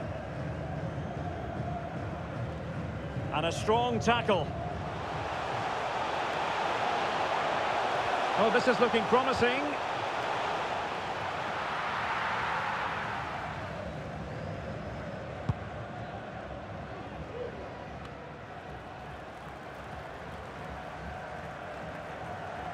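A large stadium crowd roars steadily, swelling and then fading.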